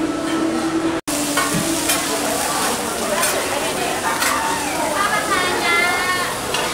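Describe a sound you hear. A metal spatula scrapes and clatters on a hot griddle.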